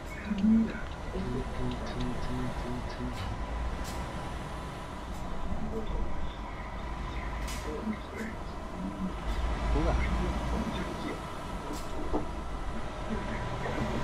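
A truck engine rumbles steadily as the truck drives along.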